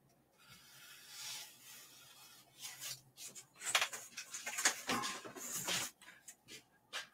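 Paper rustles and crinkles under hands.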